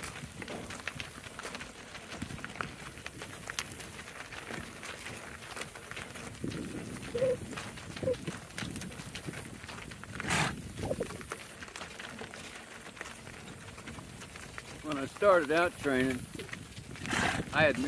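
Hooves clop steadily on a gravel road.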